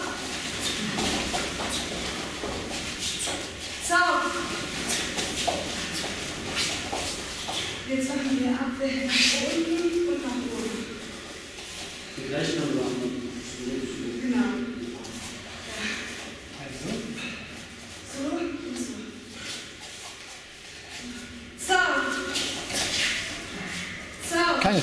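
Bare feet thud and shuffle on a padded floor.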